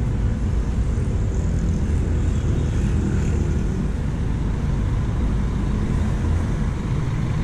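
A bus engine rumbles close by as the bus passes slowly.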